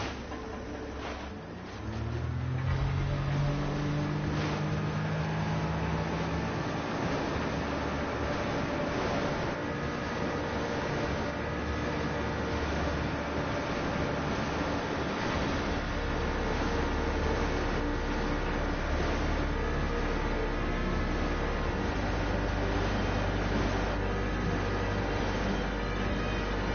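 Water splashes and hisses under a speeding jet ski.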